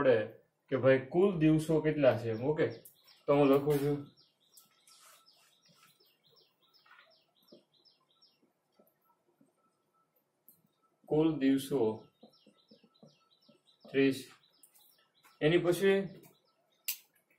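A man speaks clearly in a teaching manner, close by.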